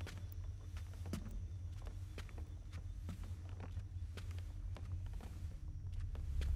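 Slow footsteps tread softly on a hard floor.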